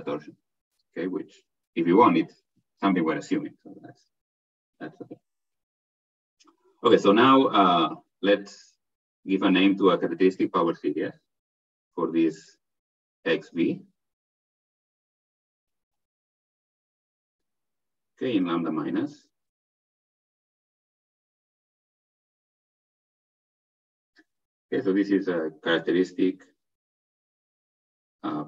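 A man lectures calmly through an online call, with pauses between phrases.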